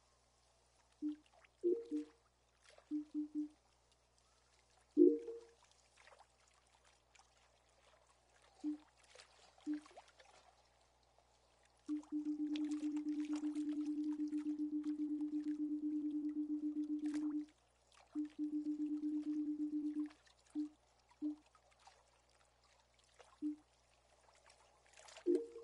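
Short electronic beeps sound, sometimes running together in a rapid buzzing string.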